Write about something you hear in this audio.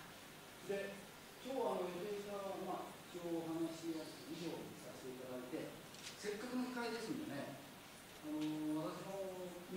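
A woman speaks calmly through a microphone in an echoing hall.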